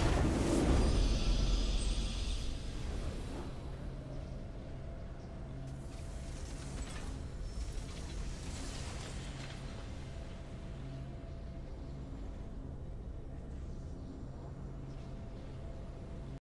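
A triumphant game fanfare plays and settles into soft music.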